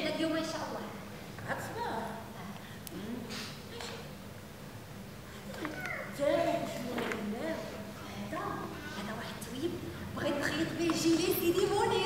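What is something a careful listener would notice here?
A woman answers in a calmer voice.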